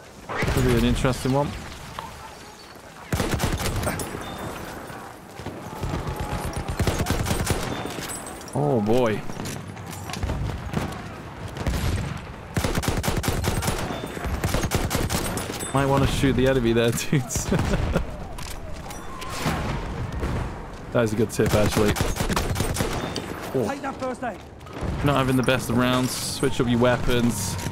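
Rifle shots crack loudly and repeatedly.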